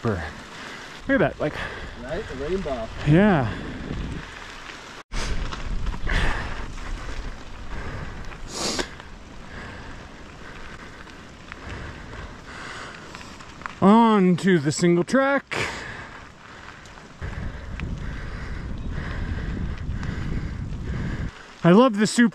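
Bicycle tyres crunch and rattle over gravel and rocky dirt.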